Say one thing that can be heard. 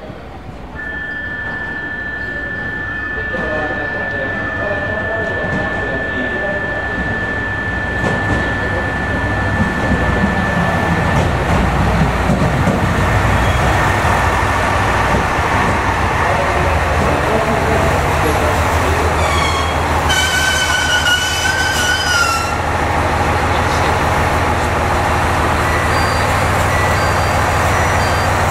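A train pulls into an echoing station with a rising rumble.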